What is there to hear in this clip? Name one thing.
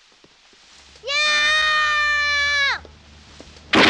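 A young boy screams loudly.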